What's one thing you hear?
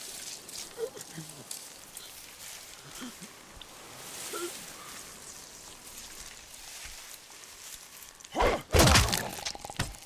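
Dry leaves rustle as a man pushes through bushes.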